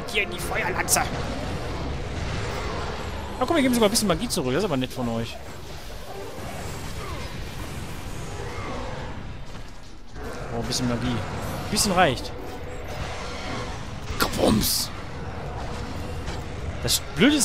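Blades slash and strike with sharp metallic hits.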